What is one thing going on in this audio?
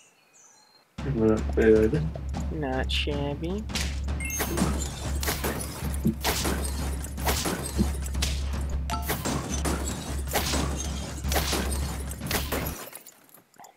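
Upbeat game music plays.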